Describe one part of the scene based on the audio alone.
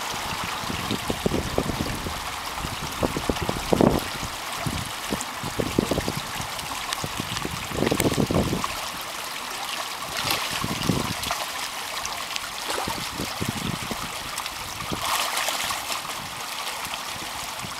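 A small stream gurgles and rushes steadily over a shallow drop.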